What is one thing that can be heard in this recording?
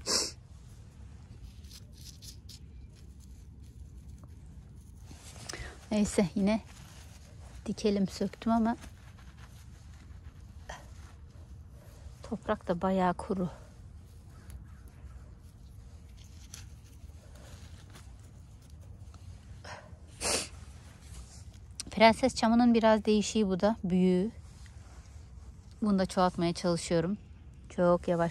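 A gloved hand rustles through dry soil and small plants.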